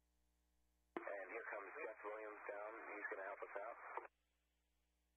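A man speaks briefly, as if heard through a radio.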